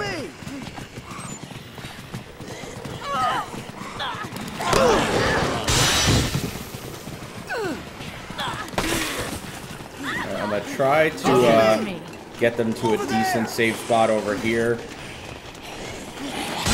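Zombies groan and moan.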